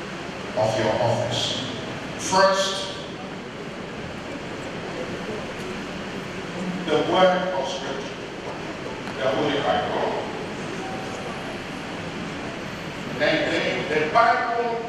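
An elderly man speaks solemnly into a microphone, heard through loudspeakers in a large echoing hall.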